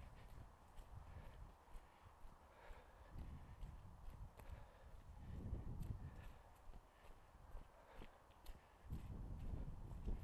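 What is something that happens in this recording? Footsteps crunch on dry dirt ground.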